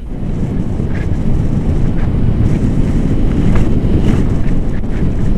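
Strong wind roars and buffets against a microphone.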